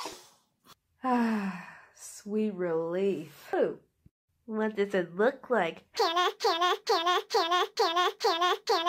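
A high, squeaky voice speaks with animation.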